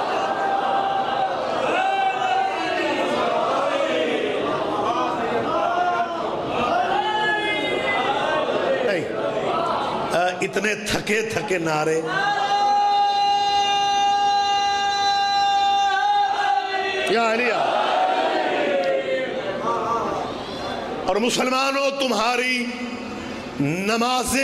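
A middle-aged man recites with passion through a loudspeaker, at times holding long sung notes.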